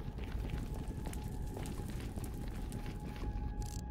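Fire crackles.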